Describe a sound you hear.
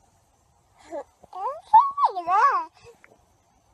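A little girl giggles close by.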